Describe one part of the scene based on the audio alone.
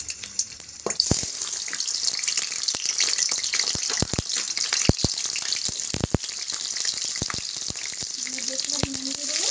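Potato pieces drop into hot oil with soft thuds.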